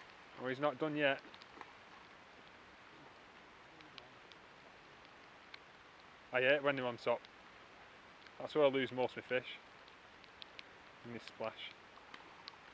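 A man speaks calmly in short bursts close by.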